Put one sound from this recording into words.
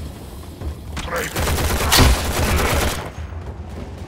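Gunshots and blasts ring out.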